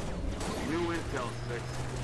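A rifle fires a burst of rapid shots.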